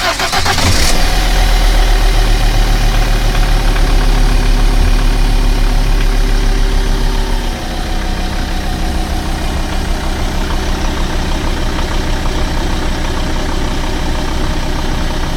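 A diesel engine runs with a loud, steady rumbling clatter close by, its pitch dropping slightly partway through.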